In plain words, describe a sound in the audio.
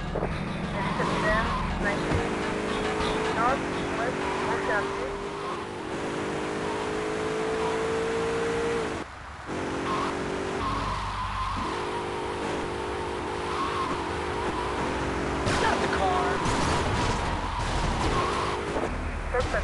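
A car engine drones steadily while driving.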